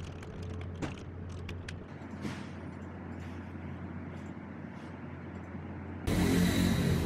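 Keys clatter on a keyboard as someone types quickly.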